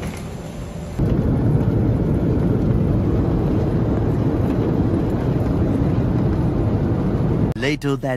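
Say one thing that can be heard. An airliner's engines roar steadily, heard from inside the cabin.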